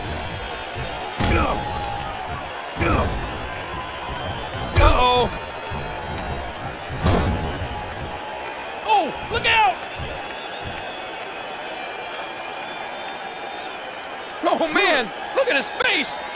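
A large crowd cheers steadily in a big arena.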